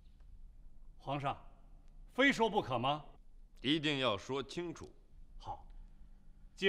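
A young man speaks firmly and loudly.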